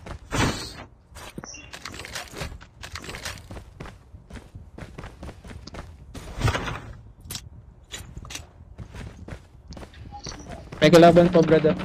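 Quick footsteps thud on a hard floor.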